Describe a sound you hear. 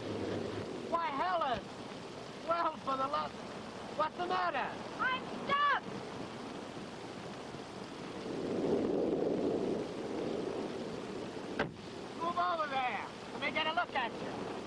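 A man talks inside a car.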